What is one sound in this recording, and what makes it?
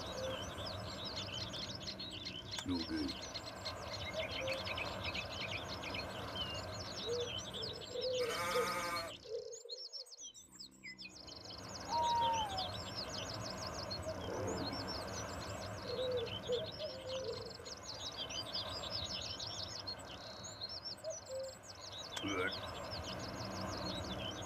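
Water laps gently at a shore.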